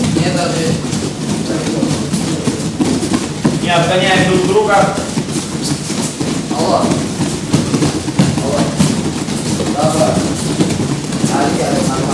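Bare feet thud and patter on soft mats as children run.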